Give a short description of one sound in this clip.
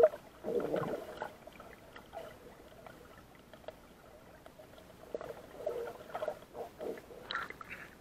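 Small waves lap and splash close by.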